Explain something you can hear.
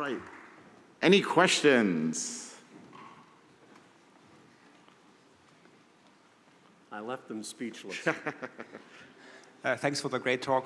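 A man speaks loudly in a large hall.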